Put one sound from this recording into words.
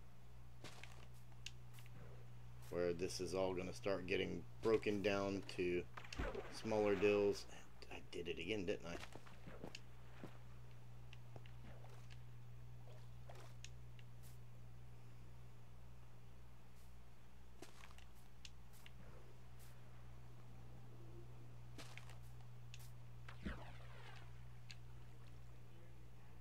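Water trickles and splashes steadily.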